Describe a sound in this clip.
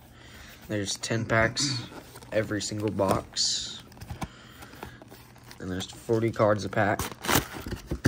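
Fingers tap and scrape on a cardboard box.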